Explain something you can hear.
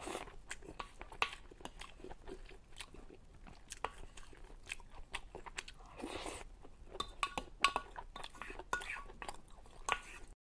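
A wooden spoon scrapes and clinks against a bowl.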